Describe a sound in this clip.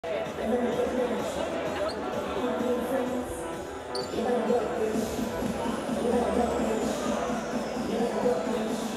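A woman talks casually close by in a large echoing hall.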